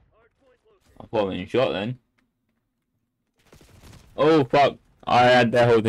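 A man talks loudly and with animation close to a microphone.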